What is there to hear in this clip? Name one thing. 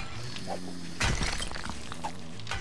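Chunks of rock break loose and clatter down.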